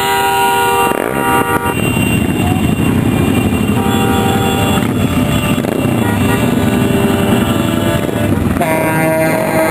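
Heavy trucks in a convoy drive past with a low engine rumble.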